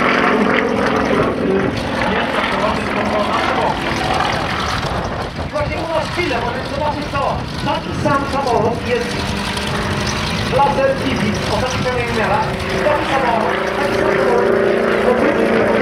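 A small propeller plane's engine drones overhead, its pitch shifting as it loops and rolls.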